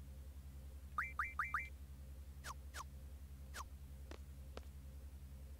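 Short electronic menu blips chirp in quick succession.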